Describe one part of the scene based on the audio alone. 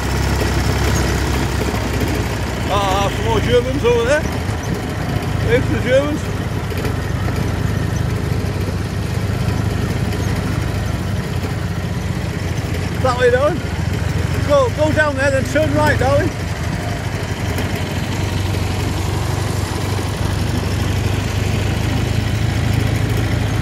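A motorcycle engine rumbles as it rides over grass.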